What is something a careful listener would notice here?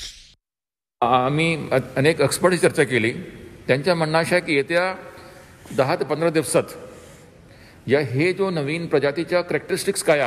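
A man speaks calmly into microphones, close by.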